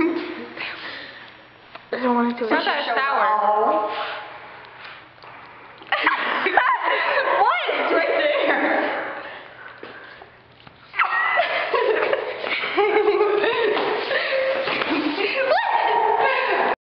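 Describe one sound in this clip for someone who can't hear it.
A young woman talks close by through a small microphone.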